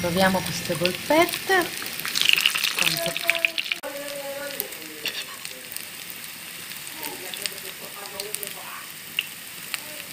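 A metal spoon scrapes against a frying pan.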